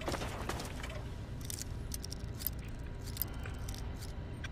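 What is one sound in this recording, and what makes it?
Metal clicks and scrapes as a lock is picked.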